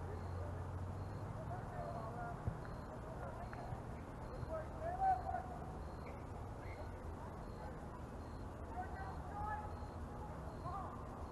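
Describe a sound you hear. Distant players and spectators shout and call out outdoors.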